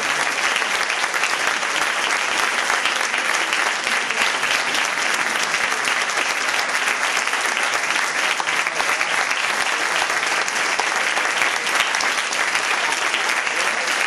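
A large audience applauds loudly and steadily in an echoing hall.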